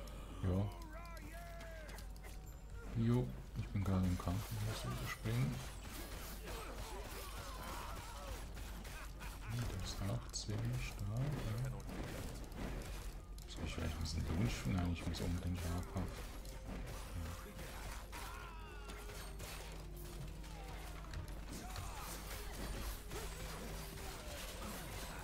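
Game combat sounds of slashing blows and impacts clatter rapidly.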